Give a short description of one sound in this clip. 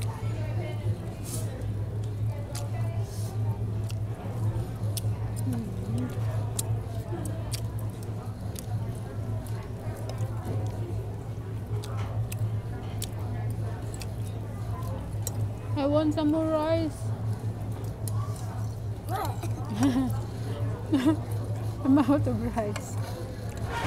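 Forks and knives clink against plates.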